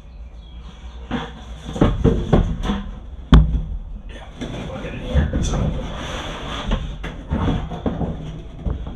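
A plastic bucket thumps and scrapes as it is set down.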